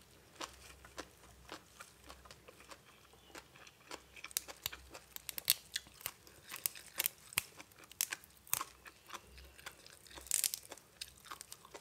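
Fresh leafy greens rustle and snap close to a microphone.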